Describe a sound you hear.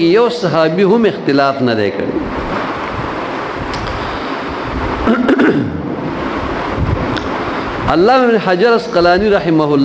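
An elderly man chants melodiously into a microphone, heard through a loudspeaker.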